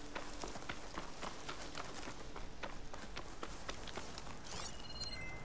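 Quick footsteps rustle through dry grass.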